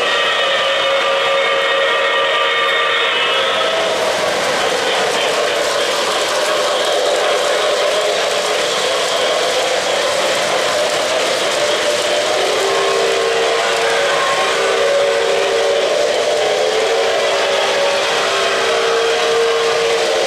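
O-gauge model trains rumble along metal track.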